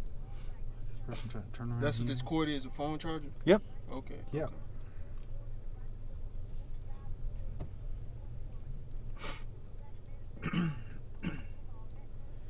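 A man speaks calmly, close by, inside a car.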